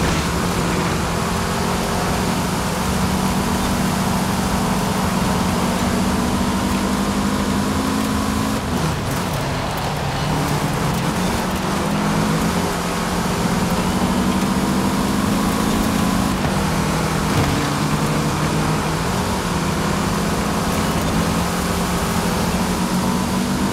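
A car engine roars at high revs, dropping and climbing as gears shift.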